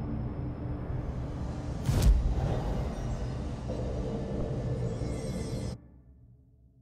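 A low, dense hum drones and then cuts off.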